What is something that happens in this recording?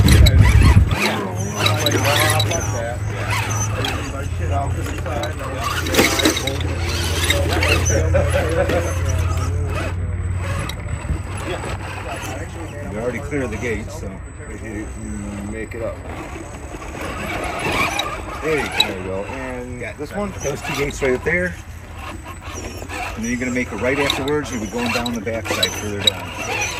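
Small tyres scrape and crunch over rocks.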